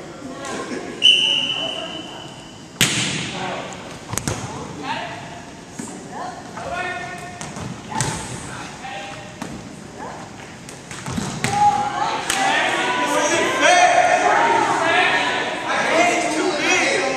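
Young men and women call out and chatter across a large echoing hall.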